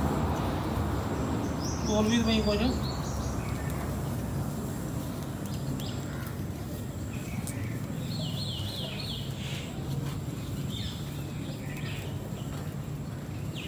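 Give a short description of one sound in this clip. Hands rustle and tear weeds from the grass, close by.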